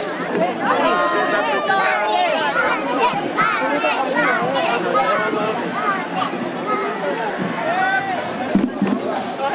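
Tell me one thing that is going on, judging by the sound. Many young children chatter and shout excitedly close by.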